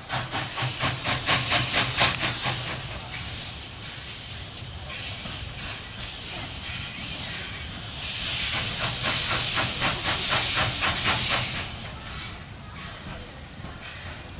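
A steam locomotive chuffs in rapid puffs as it approaches.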